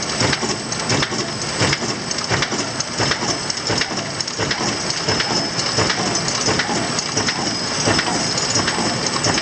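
A machine runs with a steady loud whir.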